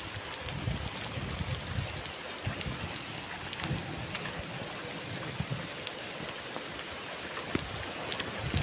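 Wind gusts rumble outdoors.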